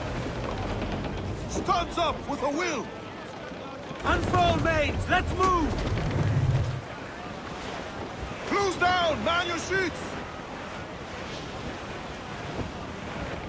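Wind blows through the sails and rigging.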